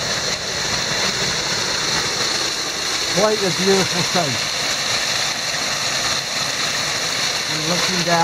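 A waterfall splashes and roars steadily close by.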